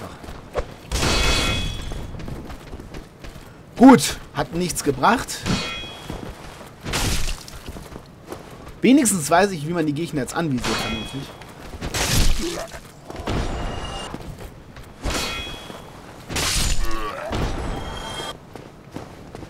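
A heavy blade whooshes and strikes with dull thuds, again and again.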